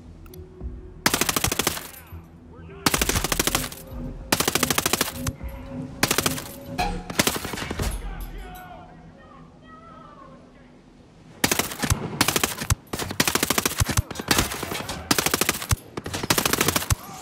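A rifle fires rapid bursts of automatic gunfire close by.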